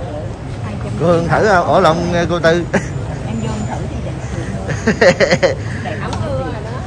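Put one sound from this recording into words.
Women talk with animation close by.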